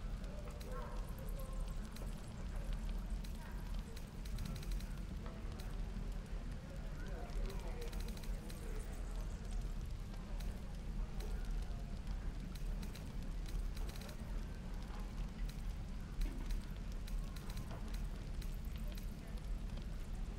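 Soft interface clicks and chimes sound as menu items are selected.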